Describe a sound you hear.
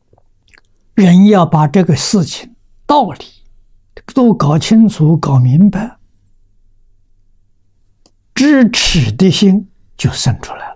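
An elderly man speaks calmly through a microphone, in short phrases with pauses.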